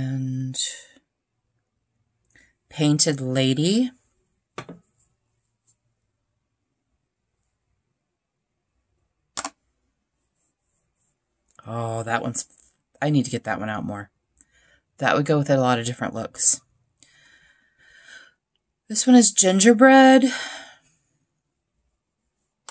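Small metal pans click into place on a magnetic tray.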